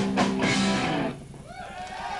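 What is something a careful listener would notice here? A rock band plays loudly on an electric guitar.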